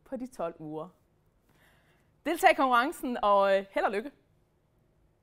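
A young woman speaks brightly and with animation close to a microphone.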